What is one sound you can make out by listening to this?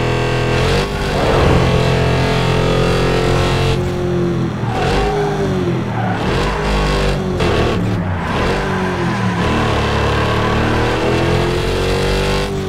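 A car engine roars at high revs, rising and falling in pitch.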